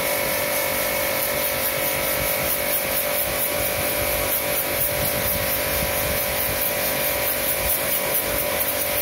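A pressure washer sprays water with a steady hiss and a droning motor.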